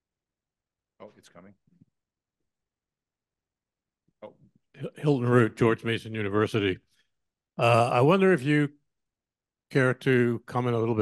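An older man speaks calmly through a microphone.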